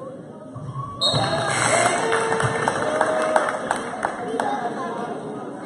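Spectators cheer loudly.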